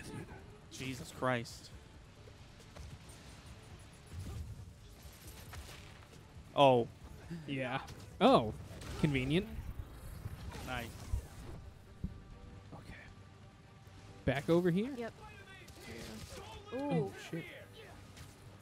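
A man talks with animation through a microphone.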